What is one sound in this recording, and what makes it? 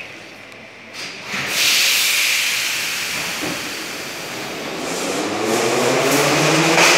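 A metro train rumbles and screeches as it pulls along the platform, echoing in a large hall.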